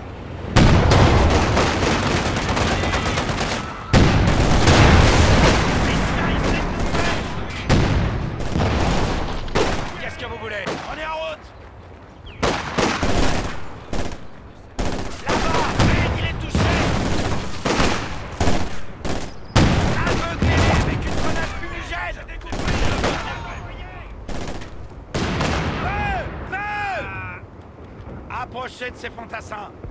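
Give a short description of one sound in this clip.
Gunfire crackles in bursts.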